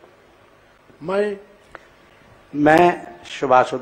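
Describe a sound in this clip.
A man speaks formally into a microphone.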